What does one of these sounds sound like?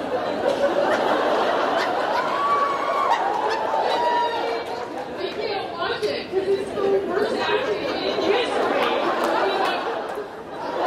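A woman speaks with animation through a microphone in a large hall.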